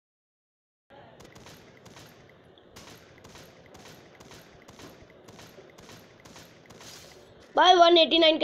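A rifle fires a rapid series of sharp shots.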